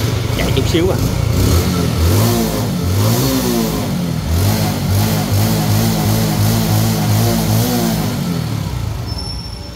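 A motorcycle engine revs up and down close by, then quiets.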